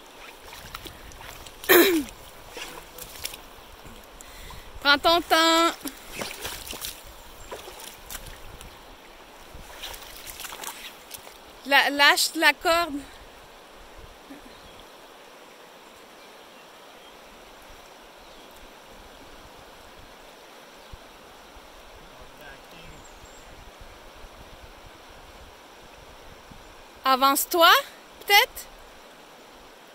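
A river rushes over stones outdoors.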